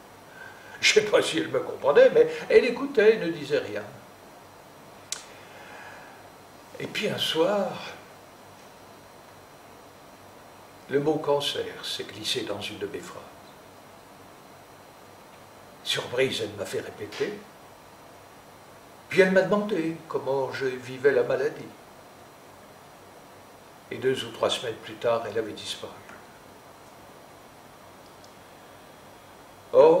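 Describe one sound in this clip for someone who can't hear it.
An elderly man speaks slowly and thoughtfully into a microphone, with long pauses.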